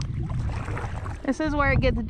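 A paddle splashes in calm water.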